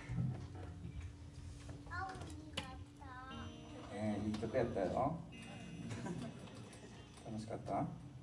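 A band plays live music with drums, keyboard and electric guitar.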